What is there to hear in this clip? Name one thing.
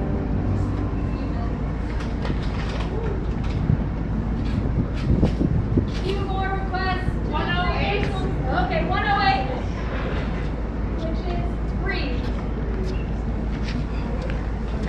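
Men and women chatter nearby in an echoing hall.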